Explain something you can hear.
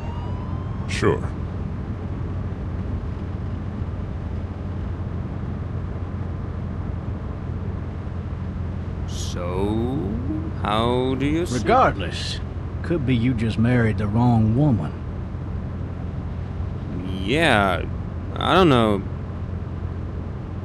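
A car engine hums steadily throughout.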